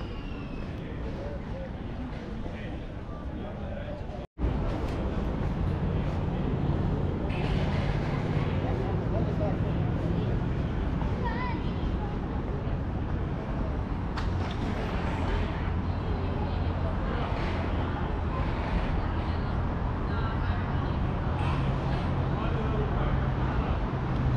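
Distant voices murmur across an open square outdoors.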